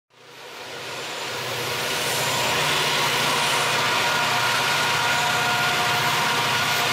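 Train wheels roar and squeal along the rails.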